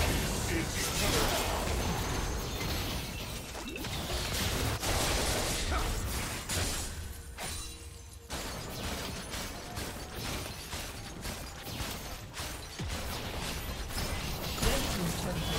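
Spell blasts and weapon hits from a video game battle crackle and whoosh in quick bursts.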